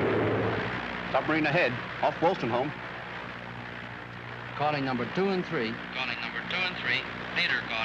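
A man speaks loudly over the engine noise.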